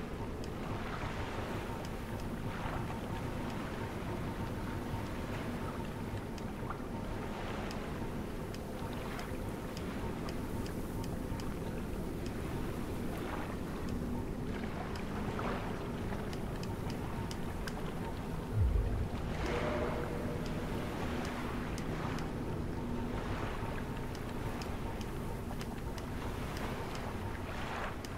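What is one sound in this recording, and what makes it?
Soft menu clicks tick repeatedly as a list is scrolled through.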